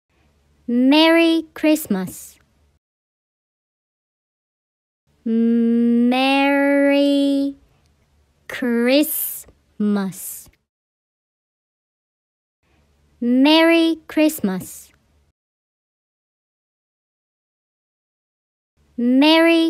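A young woman's voice says words slowly and clearly, heard closely through a microphone, with pauses between them.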